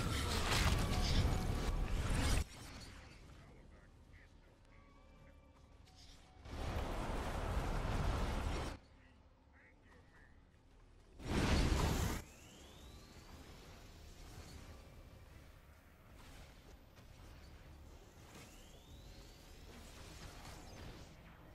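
Game combat effects zap, blast and clash in bursts.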